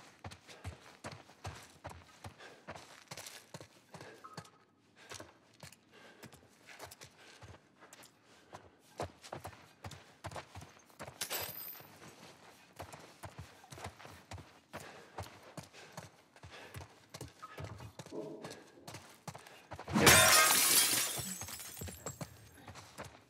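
Footsteps crunch over debris-strewn floors at a steady walking pace.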